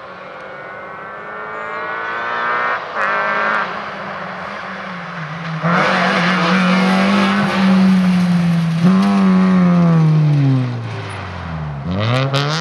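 A small rally car engine roars at full throttle as the car approaches and passes by.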